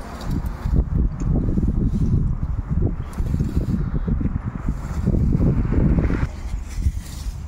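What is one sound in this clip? Rakes scrape over dry leaves and soil.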